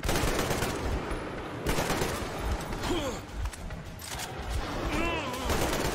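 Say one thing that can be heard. Gunshots crack in loud bursts in an echoing space.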